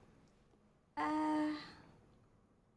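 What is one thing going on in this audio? An older woman speaks briefly and calmly close by.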